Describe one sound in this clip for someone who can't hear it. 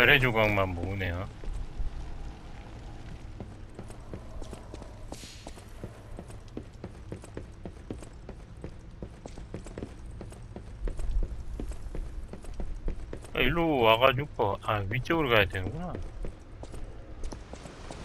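Quick footsteps run across wooden floors and stairs.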